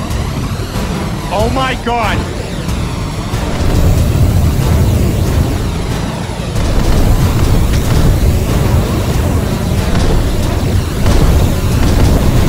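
A laser beam hums and crackles.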